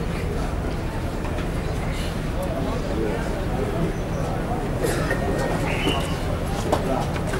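A man speaks loudly through a loudspeaker outdoors.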